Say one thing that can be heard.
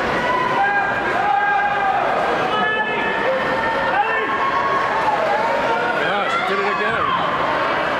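Swimmers splash and kick through the water.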